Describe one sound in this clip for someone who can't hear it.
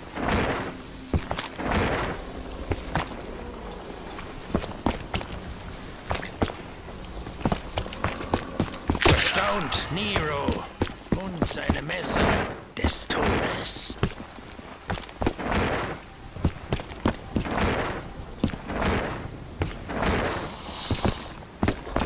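A pistol fires repeated sharp shots.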